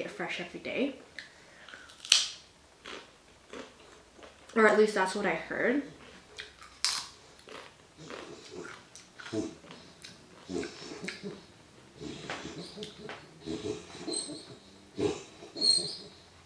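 Crunchy chips crack and crunch as a young woman chews them close to a microphone.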